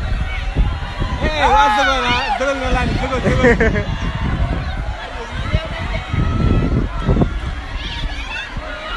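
A crowd of teenage students shouts and cheers outdoors.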